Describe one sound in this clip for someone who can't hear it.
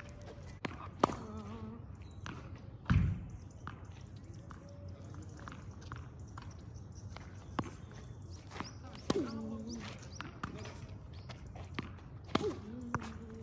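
A paddle smacks a ball outdoors.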